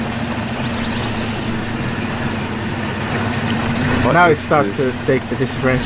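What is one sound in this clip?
A truck engine rumbles steadily as it drives slowly over rough ground.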